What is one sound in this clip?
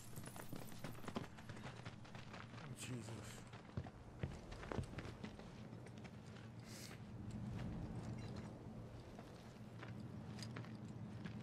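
Footsteps crunch on loose gravel and stone.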